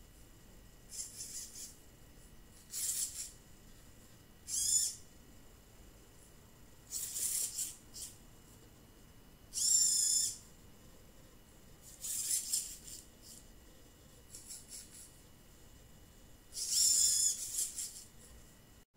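Small robot motors whir in short high bursts as the robot's arms move.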